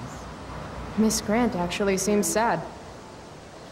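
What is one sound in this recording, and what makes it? A young woman speaks briefly and calmly into a microphone.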